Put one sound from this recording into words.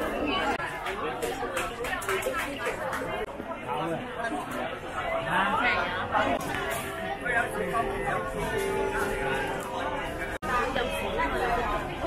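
A crowd of men and women chatter around the listener indoors.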